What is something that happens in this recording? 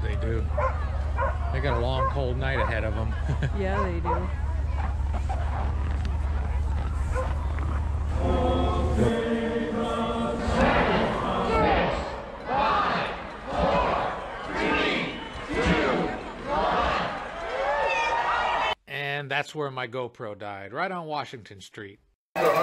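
A crowd of people chatters and cheers outdoors.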